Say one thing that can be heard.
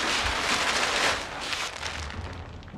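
A plastic tarp rustles and crinkles as it is handled.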